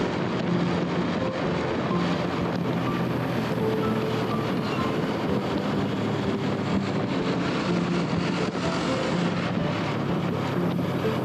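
A motorcycle engine hums steadily at close range.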